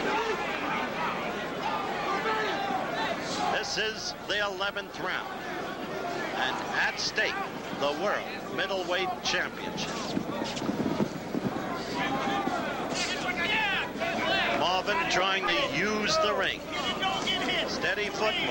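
Boxing gloves thud against a body in quick punches.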